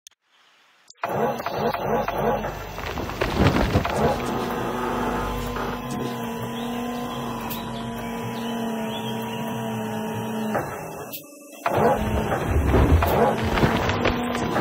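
Dirt and rocks rumble and pour from an excavator bucket.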